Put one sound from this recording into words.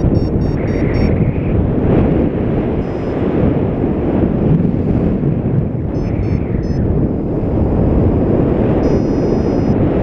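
Strong wind buffets and roars across the microphone.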